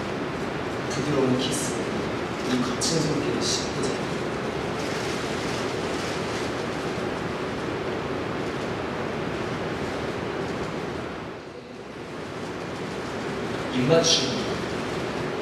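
A young man speaks softly in a large hall.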